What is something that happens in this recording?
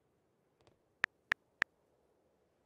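Soft keyboard taps click three times in quick succession.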